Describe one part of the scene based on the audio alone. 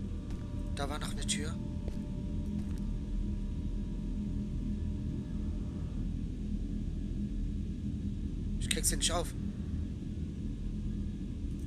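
A low, steady hum drones throughout.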